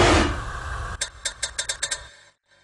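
A metal mechanism clicks rapidly.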